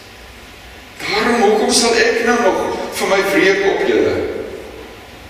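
An elderly man speaks calmly through a microphone in an echoing hall.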